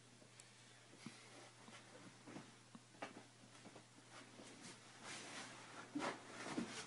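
A person thumps onto a creaking leather sofa.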